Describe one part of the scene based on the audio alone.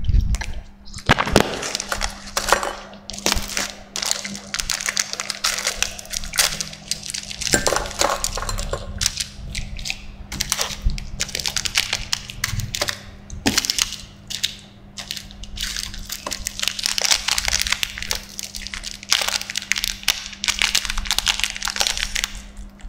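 A plastic wrapper crinkles and rustles loudly.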